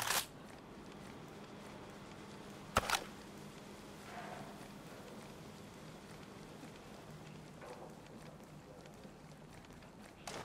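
Footsteps crunch softly on snow.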